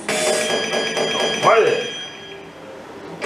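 A slot machine plays a chiming electronic jingle.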